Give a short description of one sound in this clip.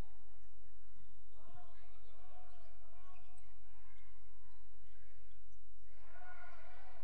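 Basketball players' sneakers squeak on a hardwood court in a gym.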